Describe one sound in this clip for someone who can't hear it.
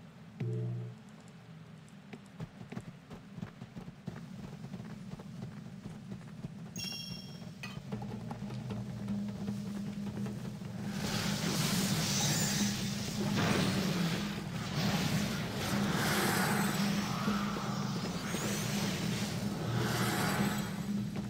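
Magic spells crackle and whoosh during a fight.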